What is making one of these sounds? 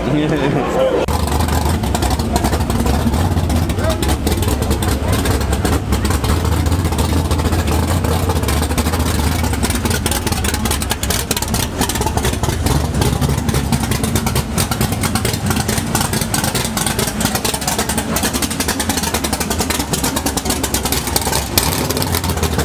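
A car engine rumbles loudly at idle close by.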